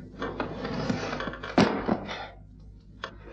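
A second man gasps and groans in strain.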